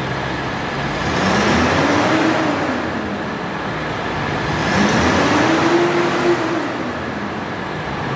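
An engine revs up and back down twice.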